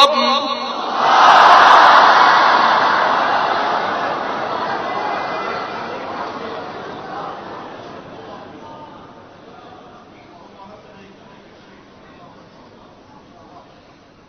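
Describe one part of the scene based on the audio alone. A large crowd cries out together and then slowly fades away.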